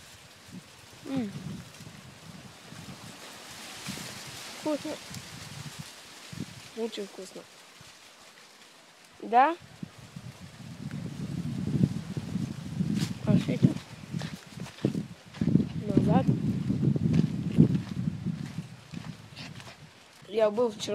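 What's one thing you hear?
A boy speaks close by, in short bursts.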